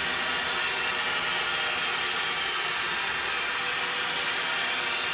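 A large crowd cheers and chants steadily in an echoing arena.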